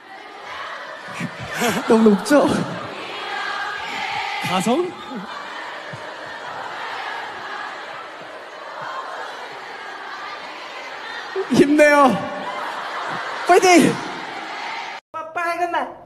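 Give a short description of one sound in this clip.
A large crowd cheers in an echoing hall.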